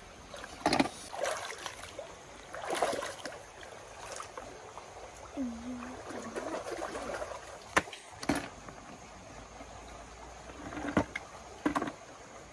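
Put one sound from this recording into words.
Water splashes as a child wades through a shallow stream.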